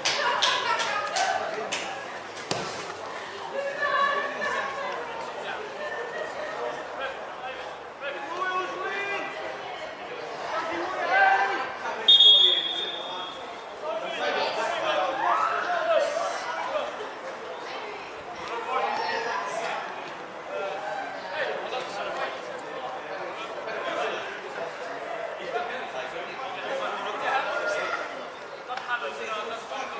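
Men shout across an outdoor pitch.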